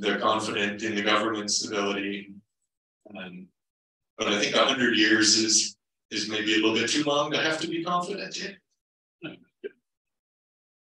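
A man speaks calmly through a microphone, pausing between phrases.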